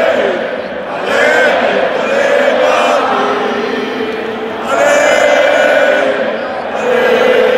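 A huge stadium crowd sings loudly together in swelling waves, echoing around the stands.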